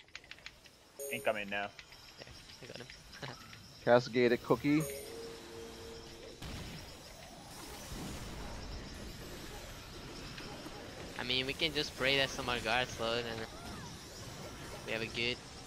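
Spell effects whoosh and burst in a busy battle.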